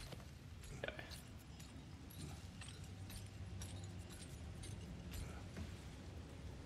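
A chain rattles and clinks as it is climbed.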